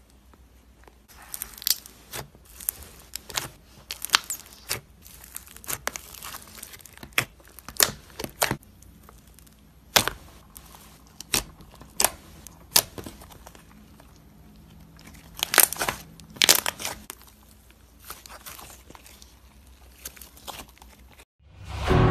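Slime squishes and crackles under pressing fingers.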